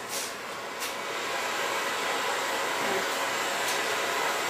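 A gas torch hisses steadily.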